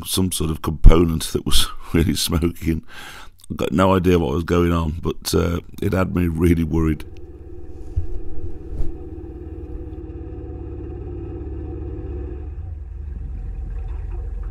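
A boat engine chugs steadily at low pitch.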